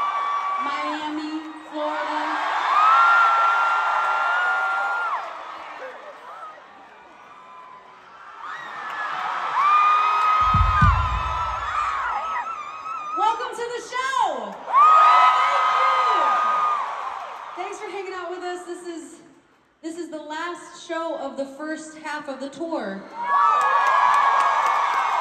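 A young woman sings loudly into a microphone over loudspeakers in a large hall.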